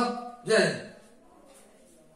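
A middle-aged man speaks clearly into a close microphone.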